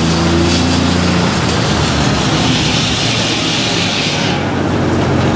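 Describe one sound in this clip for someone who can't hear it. A large circular saw whines loudly as it cuts through a log.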